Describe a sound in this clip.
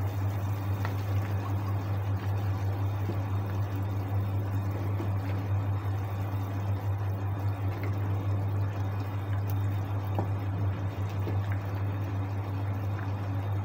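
A wooden spatula stirs and scrapes through soup in a pot.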